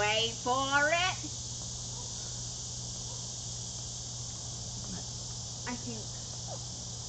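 A young woman speaks in a high, animated voice close by.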